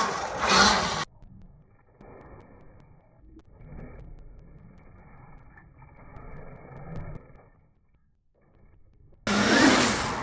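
A bicycle's tyres roll and grind over concrete.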